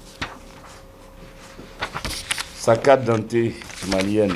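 Paper rustles as a man handles a sheet.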